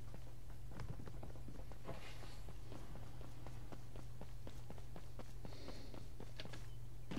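Footsteps patter on hard ground.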